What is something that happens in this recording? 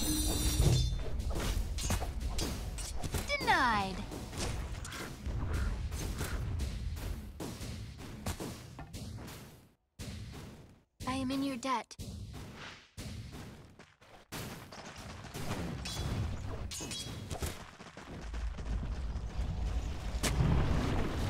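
Video game combat sounds clash with rapid hits, blasts and magical whooshes.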